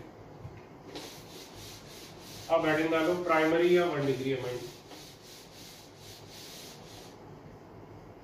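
A whiteboard eraser rubs back and forth across a board.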